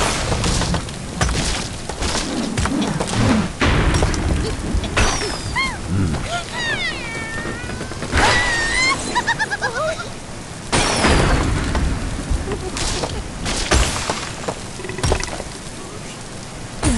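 Rain pours steadily.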